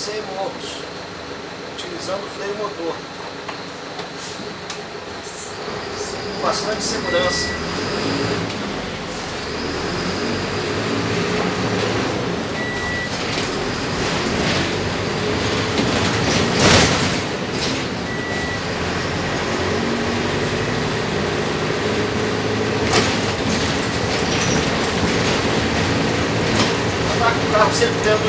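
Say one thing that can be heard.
A bus engine hums and rises as the bus drives along a road.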